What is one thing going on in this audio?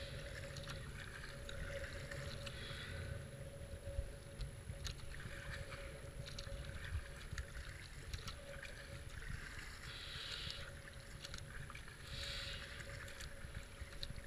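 Paddle blades splash and dip into water in a steady rhythm.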